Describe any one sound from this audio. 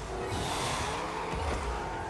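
A rocket boost hisses.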